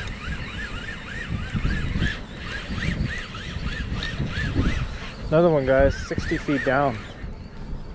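A fishing reel winds with a fast, repeating whir.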